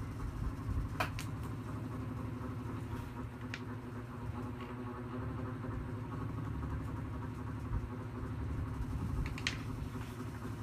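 Crayons clatter and knock on a wooden table.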